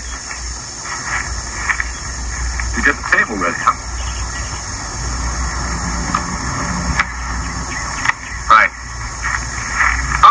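A second young man answers calmly, heard through a television speaker.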